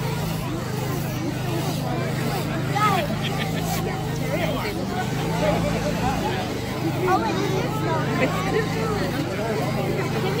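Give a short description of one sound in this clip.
A crowd of children and adults chatters nearby outdoors.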